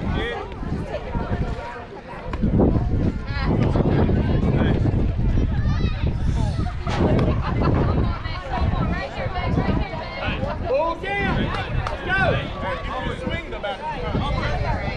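Young girls shout and cheer at a distance outdoors.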